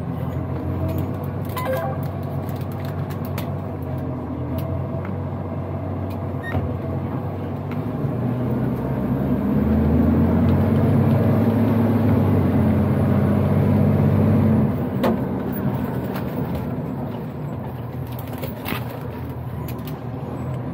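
A truck's diesel engine rumbles steadily, growing louder as it speeds up and then easing off.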